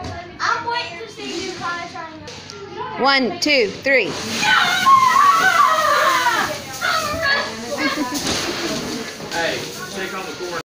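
Young boys shout and laugh with excitement nearby.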